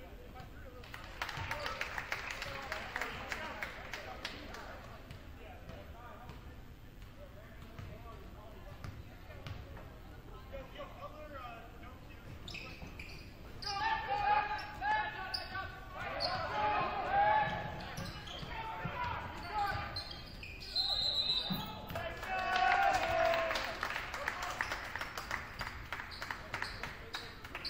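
Spectators chatter and cheer in a large echoing gym.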